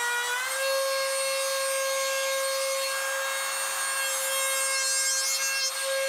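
A router whines steadily at high speed, cutting through wood.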